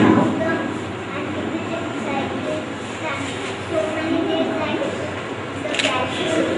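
A young boy speaks nearby, explaining calmly.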